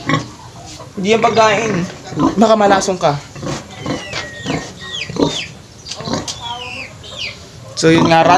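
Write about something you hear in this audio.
Pigs squeal shrilly nearby.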